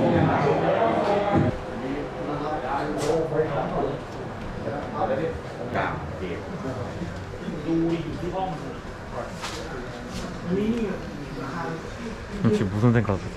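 Several young men chat and call out in an echoing room.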